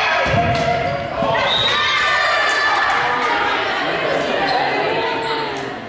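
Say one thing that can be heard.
Sneakers squeak on a hard gym floor.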